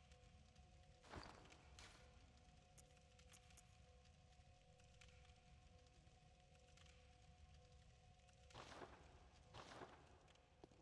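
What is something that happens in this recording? Short soft clicks sound as menu items are chosen.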